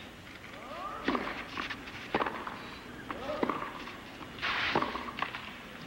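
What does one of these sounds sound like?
A tennis ball is struck hard with a racket, back and forth.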